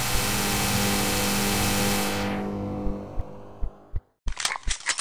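An energy beam roars with a loud, steady hum, then fades away.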